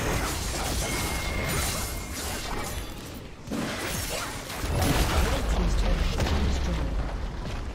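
Magic blasts and weapon hits crackle and thud in a fast video game battle.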